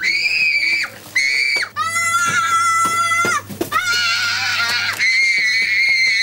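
A young boy screams and wails loudly.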